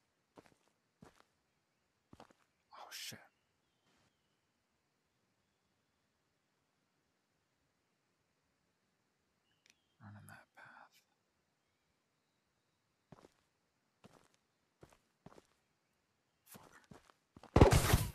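Footsteps crunch on dirt.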